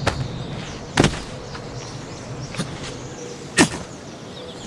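A heavy thump sounds as a body lands from a jump.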